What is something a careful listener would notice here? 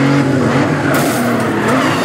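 A car bumps against another car with a thud.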